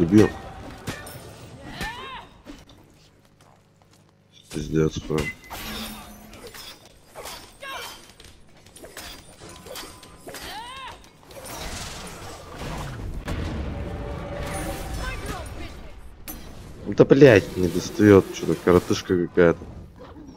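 Magic spells whoosh and burst.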